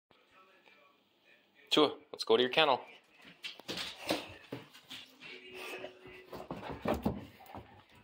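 A dog's claws click and patter across a hard floor.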